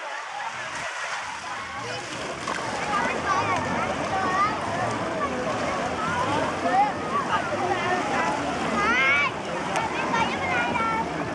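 A crowd of men, women and children talk and shout at a distance outdoors.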